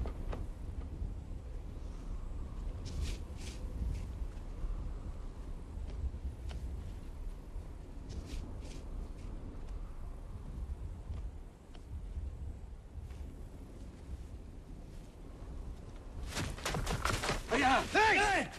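Wind rumbles low outdoors.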